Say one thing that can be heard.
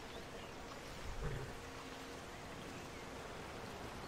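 A stream rushes nearby.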